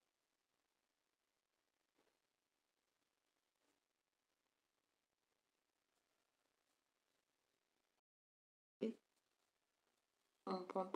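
A crochet hook softly clicks and rustles through yarn.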